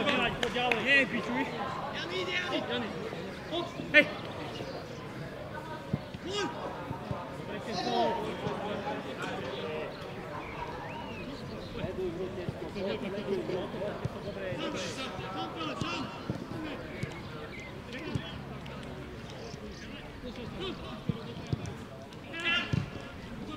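Men shout and call out to each other across an open pitch.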